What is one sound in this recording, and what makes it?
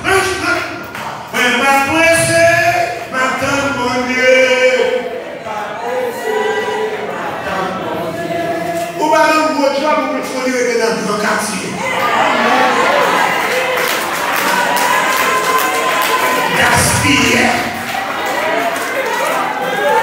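A man preaches with animation into a microphone, heard through loudspeakers in an echoing hall.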